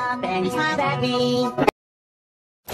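A cartoon character speaks in a high, cheerful voice.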